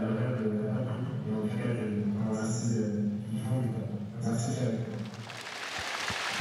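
A man speaks calmly through a loudspeaker in a large echoing hall.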